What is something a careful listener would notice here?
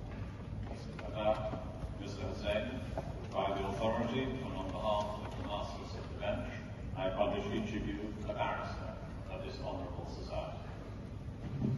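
A man speaks formally at a distance in a large echoing hall.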